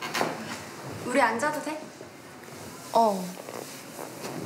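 A young woman asks a short question, close by.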